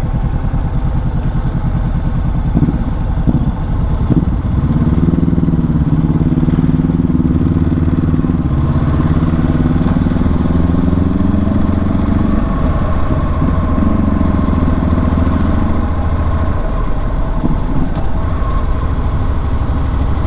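Wind rushes past the rider's helmet.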